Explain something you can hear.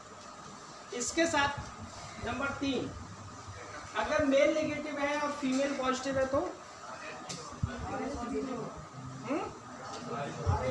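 A middle-aged man speaks calmly and explains, in a room with a slight echo.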